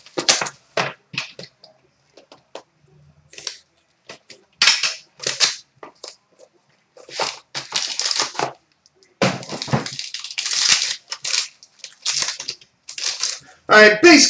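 Cards and a crinkly foil wrapper rustle in someone's hands.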